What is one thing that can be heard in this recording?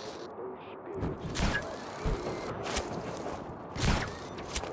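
Heavy footsteps thud on a hard rooftop.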